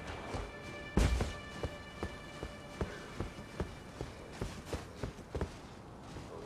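Footsteps thud steadily on wooden stairs.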